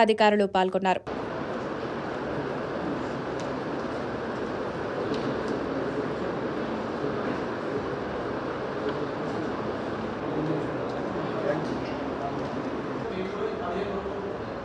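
Many people murmur in a large room.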